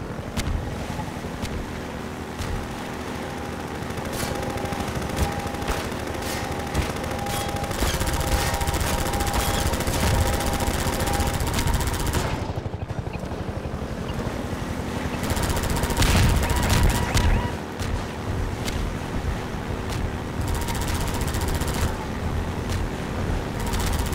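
An engine roars steadily close by.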